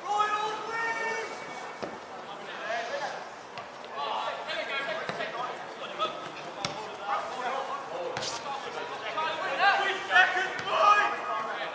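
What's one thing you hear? Young women shout and call out to each other across an open outdoor field.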